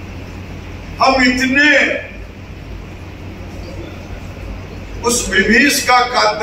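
An elderly man speaks calmly and firmly into a microphone, close by.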